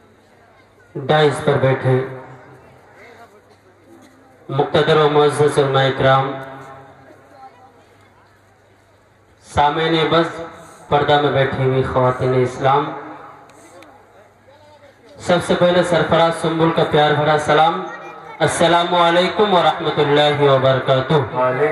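A young man sings in a melodic chant through a loudspeaker, in bursts with pauses between them.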